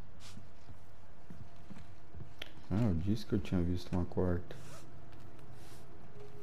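Footsteps thud softly on a hard surface.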